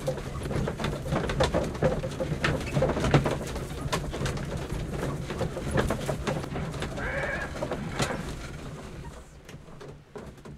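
A train carriage rattles and clatters steadily on the tracks.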